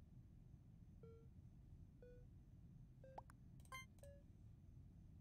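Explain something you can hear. Short electronic beeps chime one after another.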